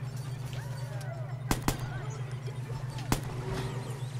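An assault rifle fires short bursts.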